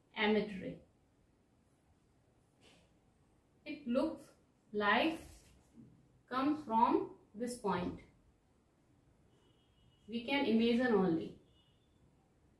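A woman speaks calmly and explains, close to a microphone, in short phrases with pauses.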